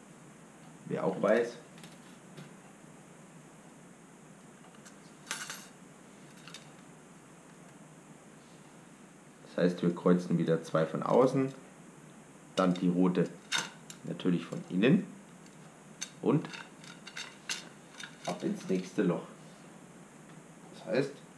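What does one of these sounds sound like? A man speaks calmly close by, with pauses.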